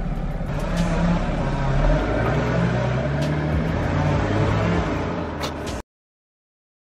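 A car engine rumbles as a car drives away.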